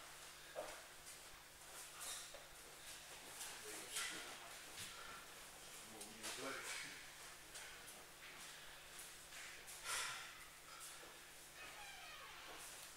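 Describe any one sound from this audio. Bare feet shuffle and thud on a padded mat.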